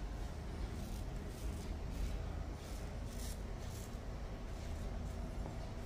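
A straight razor scrapes across stubble on skin.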